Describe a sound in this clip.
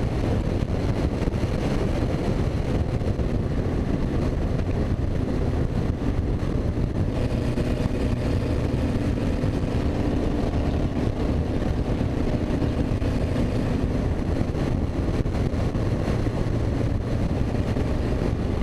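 Wind rushes loudly past an open cockpit.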